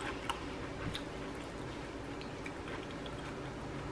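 Fingers scoop food from a bowl with soft clicks.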